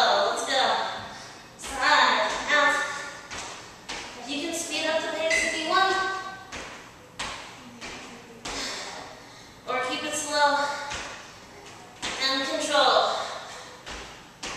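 A woman speaks with energy, close by.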